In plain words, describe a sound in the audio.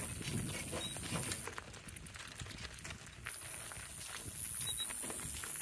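Donkey hooves clop on a dirt track.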